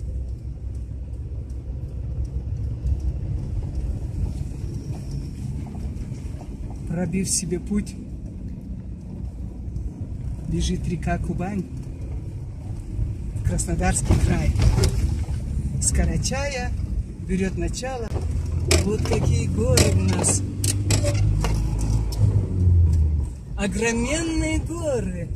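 A car engine rumbles steadily as the car drives along a road.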